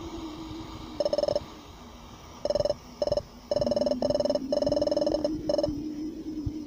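Short electronic blips beep in quick bursts.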